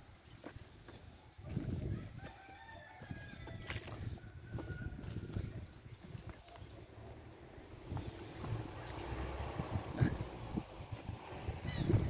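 A horse tears and chews grass close by.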